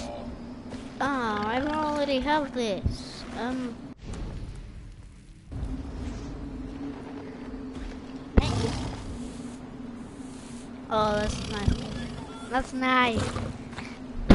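A young boy talks with animation close to a microphone.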